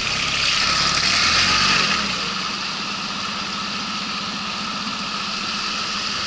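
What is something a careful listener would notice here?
Water rushes and splashes behind a boat.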